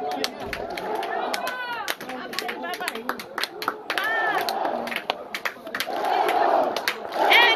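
Fans clap their hands in rhythm.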